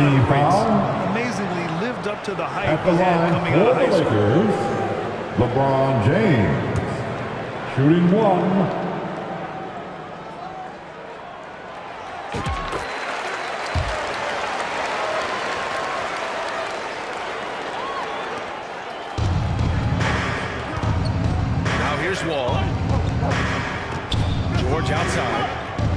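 A large arena crowd murmurs and cheers.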